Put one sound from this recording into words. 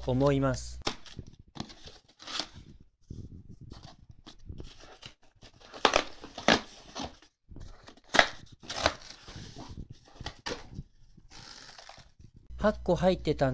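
Hands handle a cardboard box, with the cardboard rustling and thumping.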